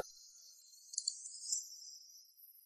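High heels click on paving stones.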